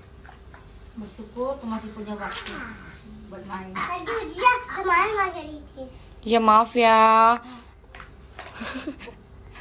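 A little girl talks and makes small sounds with her voice, close by.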